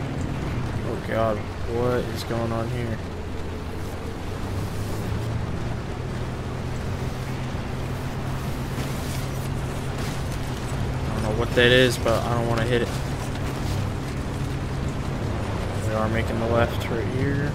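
A man talks briefly into a microphone.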